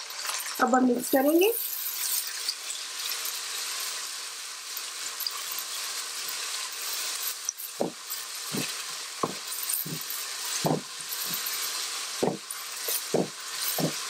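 A spatula stirs and knocks against a pot.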